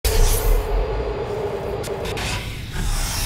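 Electrical sparks crackle and buzz.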